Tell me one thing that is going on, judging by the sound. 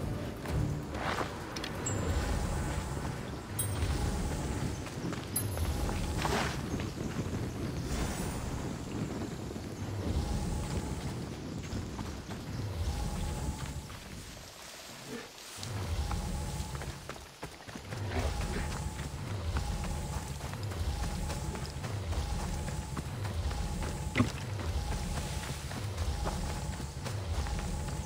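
Footsteps crunch over dry ground and stones at a steady pace.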